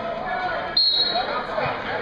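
A referee blows a short, shrill whistle.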